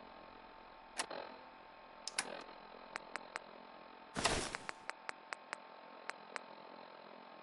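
Short electronic clicks tick in quick succession.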